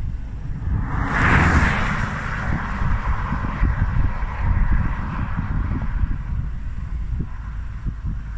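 A car drives past on the road and fades.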